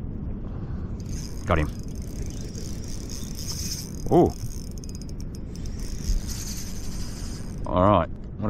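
A fishing reel's drag whirs as line is pulled out.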